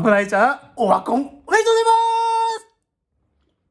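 A young man shouts and sings out loudly, close by.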